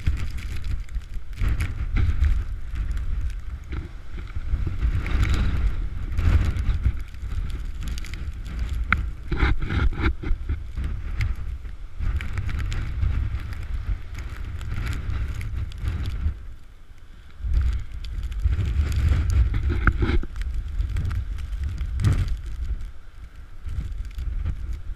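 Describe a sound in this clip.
Strong wind roars and buffets outdoors.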